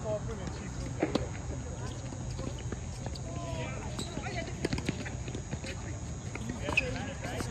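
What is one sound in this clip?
Tennis balls thwack off rackets in a rally.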